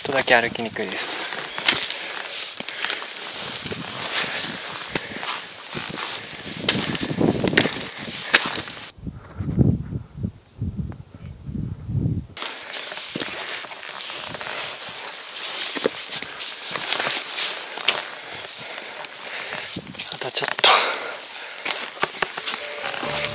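Boots crunch and scrape on loose rocky ground.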